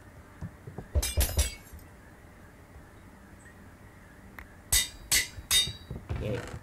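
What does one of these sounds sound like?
Sword blows land with short, sharp hits.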